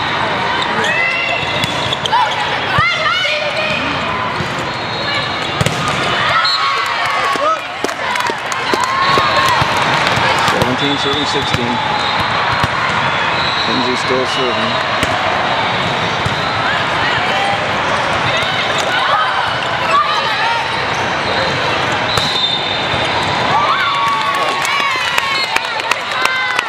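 Squeaky sneakers squeal on a hard court, echoing in a large hall.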